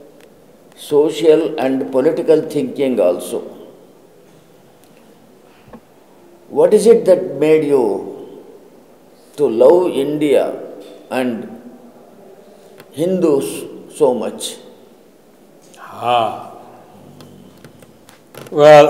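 An elderly man speaks calmly and slowly, close to a microphone, with pauses.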